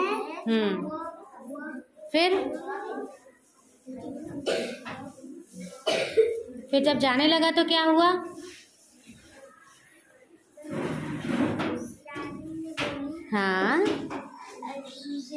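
Young children recite aloud together nearby.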